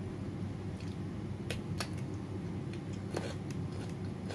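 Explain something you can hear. A woman crunches loudly on a cucumber close to a microphone.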